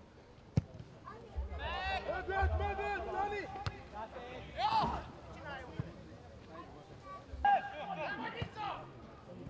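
Young men shout to one another across an open football pitch.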